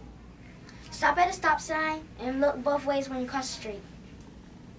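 A young boy speaks close to the microphone.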